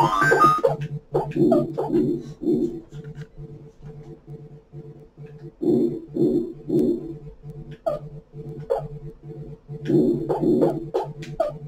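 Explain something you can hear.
Chiptune arcade game music plays in a steady bouncy rhythm from a television.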